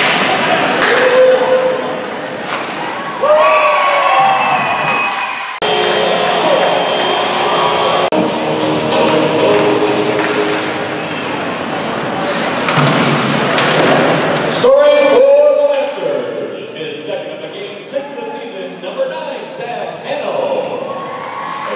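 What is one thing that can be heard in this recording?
A crowd cheers and shouts in an echoing ice rink.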